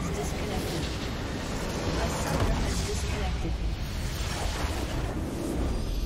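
A large structure explodes with a deep rumble.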